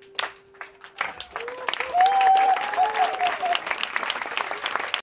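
An acoustic guitar strums a lively tune.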